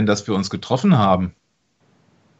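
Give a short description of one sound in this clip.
A man asks a question in a calm voice.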